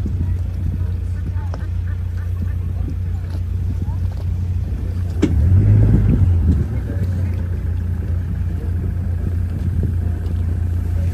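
Water splashes and laps against the boat's hull.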